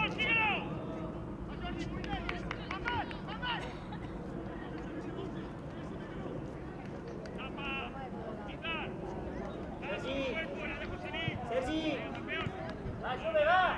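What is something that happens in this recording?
Young players call out to each other across an outdoor pitch.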